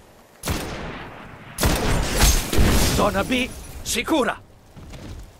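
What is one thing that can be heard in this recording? Gunshots fire in loud bursts.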